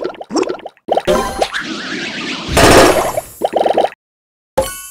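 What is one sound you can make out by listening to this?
A cartoon blast booms and crackles.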